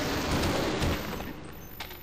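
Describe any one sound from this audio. A weapon fires with a buzzing hiss.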